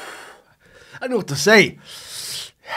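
A man lets out a wavering groan close by.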